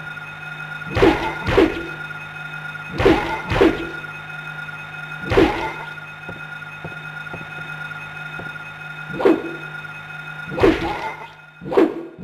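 A metal pipe thuds into a creature's body.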